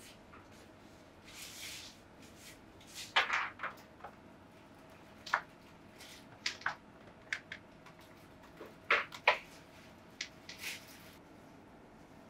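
Flower stems and leaves rustle and snap softly in someone's hands.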